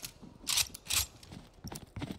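A rifle rattles as it is handled.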